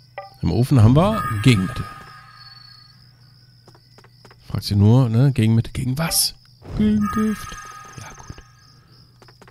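A bright chime rings as an item is picked up.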